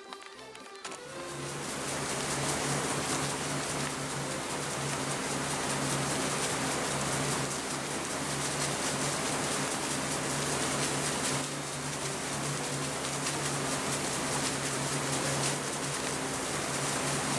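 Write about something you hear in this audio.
Water rushes along the side of a moving boat.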